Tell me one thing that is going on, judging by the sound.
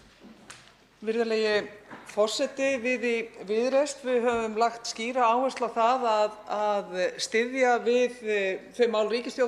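A woman speaks steadily and with animation over a microphone.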